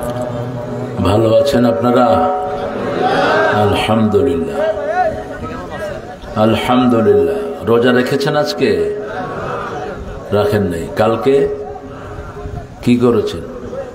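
A man preaches with animation through a loudspeaker microphone, in short, forceful bursts.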